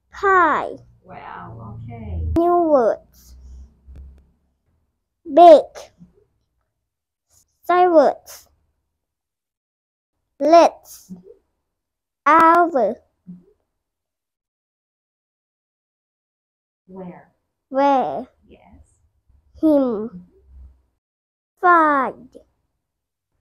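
A young boy reads aloud slowly, word by word, close to a clip-on microphone.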